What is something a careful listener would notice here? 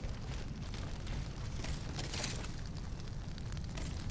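Fire crackles and roars close by.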